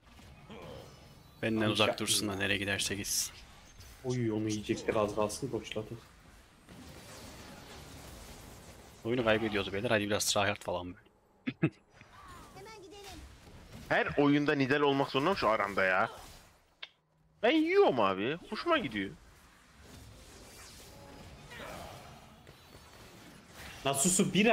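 Game spells zap and whoosh in quick bursts.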